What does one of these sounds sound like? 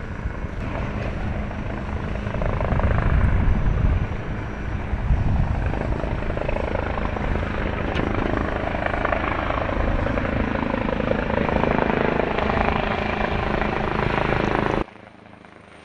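A helicopter's rotor thumps loudly and steadily as the helicopter hovers overhead.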